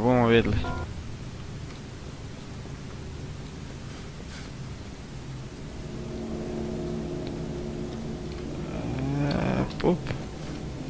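Footsteps tread on stone paving.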